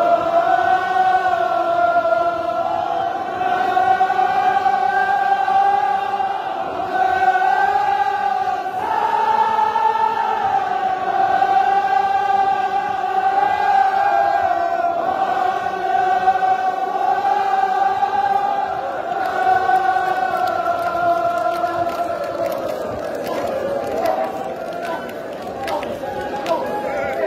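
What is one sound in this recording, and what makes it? A large crowd of men chants loudly together in a large echoing hall.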